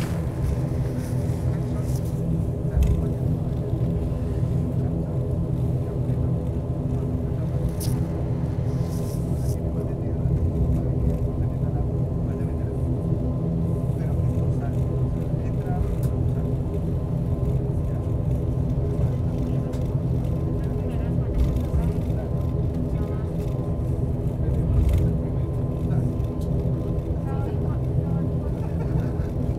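An airliner's engines drone steadily from inside the cabin as it taxis.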